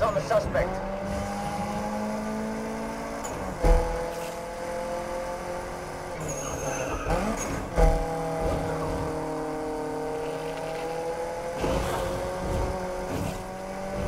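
A sports car engine roars steadily at high revs, dropping briefly with each gear change.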